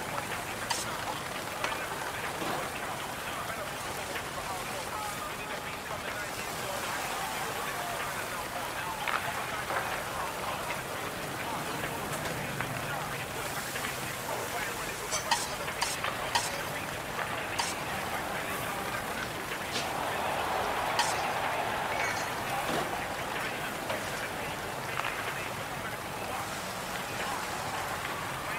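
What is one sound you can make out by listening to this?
A crowd murmurs in a large echoing arena.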